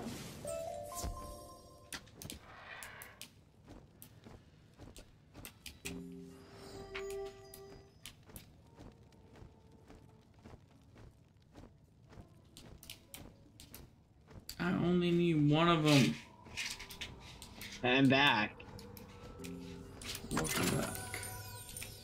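Bright chimes and magical tones ring out.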